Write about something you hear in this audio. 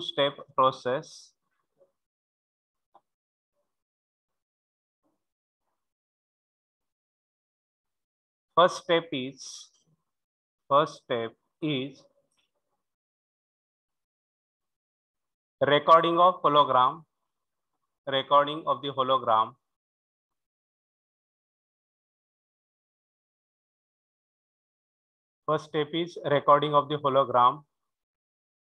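A man speaks calmly through a microphone in short bursts with long pauses.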